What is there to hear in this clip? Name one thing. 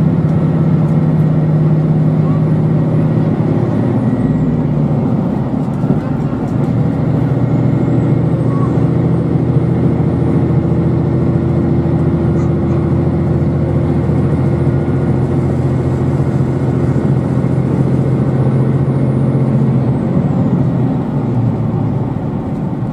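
A train's motor hums steadily with a low drone.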